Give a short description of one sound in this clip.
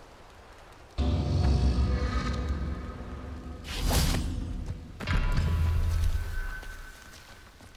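A loud whoosh and rumble sweeps by.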